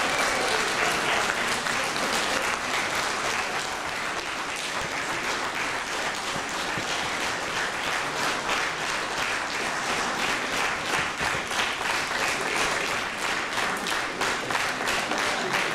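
A large audience applauds and claps steadily in an echoing hall.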